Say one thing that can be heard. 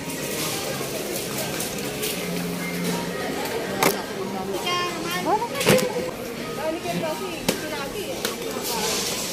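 Items rattle and knock in a plastic shopping basket.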